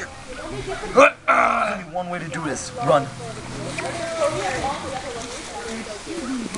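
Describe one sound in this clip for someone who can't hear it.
Young boys shout and laugh loudly close by.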